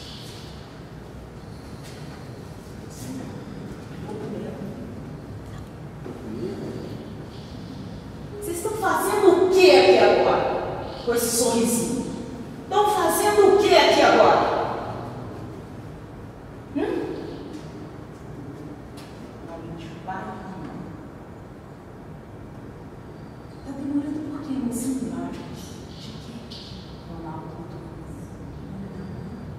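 A man speaks through a microphone and loudspeaker in an echoing hall.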